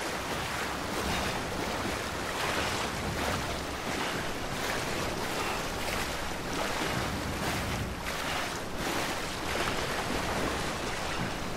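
Footsteps splash heavily through deep water.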